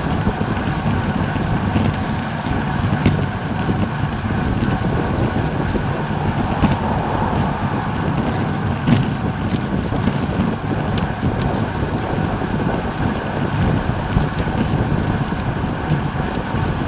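Wind rushes loudly past a cyclist riding fast outdoors.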